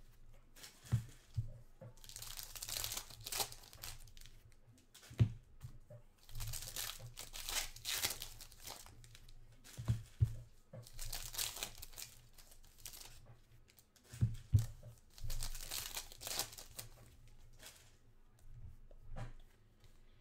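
Cards tap and knock against a table.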